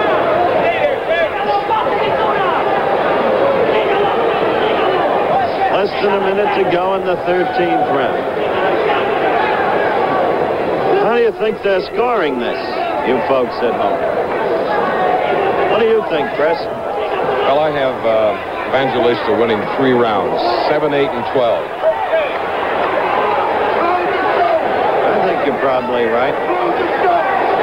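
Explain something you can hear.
A large crowd murmurs and shouts loudly in an echoing arena.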